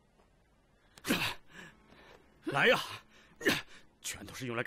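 A young man speaks tensely.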